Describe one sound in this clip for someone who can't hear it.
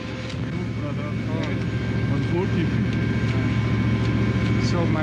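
Men talk quietly close by.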